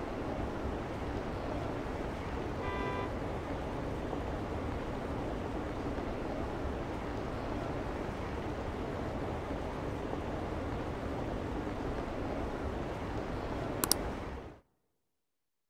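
A busy crowd murmurs and footsteps shuffle on a city street.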